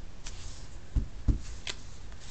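A rubber stamp thumps softly onto paper.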